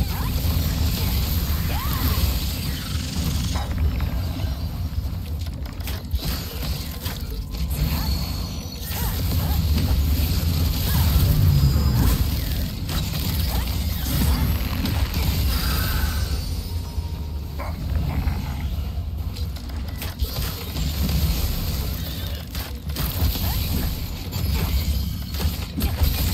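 Magic blasts whoosh and crack sharply.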